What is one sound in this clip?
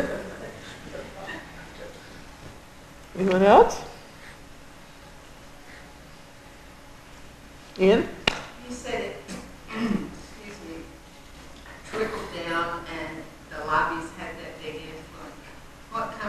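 A woman speaks calmly into a microphone in a large echoing room.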